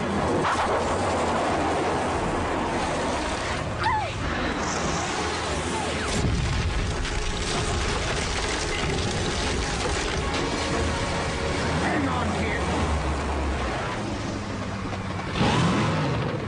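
A vehicle engine roars as it drives at speed.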